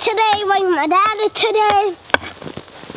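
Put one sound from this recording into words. A young boy talks loudly and excitedly close by.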